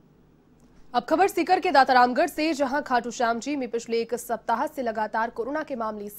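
A woman reads out calmly and clearly through a microphone, close by.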